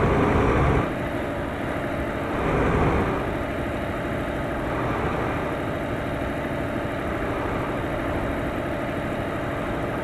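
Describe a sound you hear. Oncoming vehicles whoosh past.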